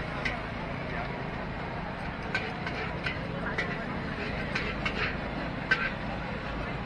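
Utensils clatter and clink at food stalls.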